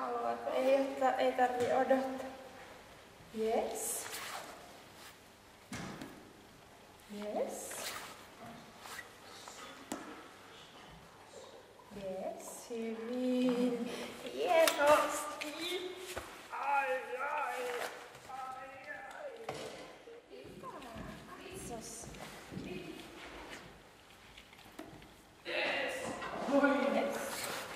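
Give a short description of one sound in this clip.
A woman talks to a dog in a warm, lively voice, close by.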